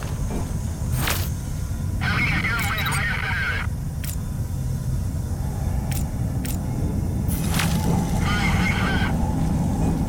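Electronic interface beeps and whirs.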